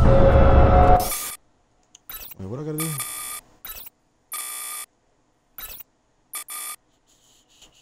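Short electronic menu tones chime and swish as pages switch.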